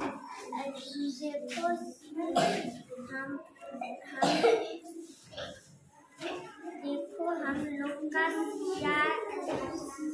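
A young girl speaks alone nearby, reciting.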